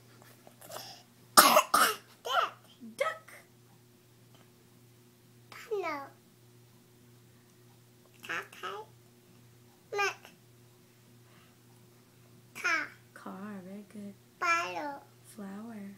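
A baby babbles and coos up close.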